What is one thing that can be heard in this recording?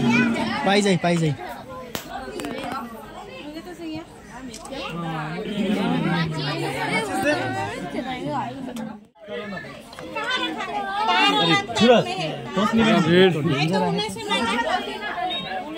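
A group of children and adults sing together nearby.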